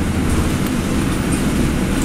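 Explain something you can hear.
A bus passes close by outside.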